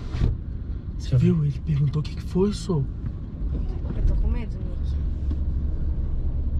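A young man speaks nearby.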